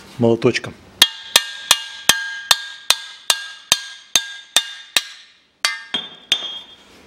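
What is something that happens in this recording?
A hammer strikes metal in quick, repeated, ringing blows.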